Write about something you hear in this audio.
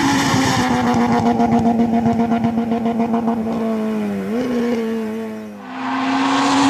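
A rally car races past at high revs.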